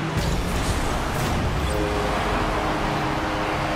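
A goal explosion booms in a video game.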